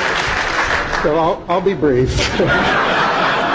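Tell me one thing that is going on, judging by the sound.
An elderly man laughs and speaks into a microphone.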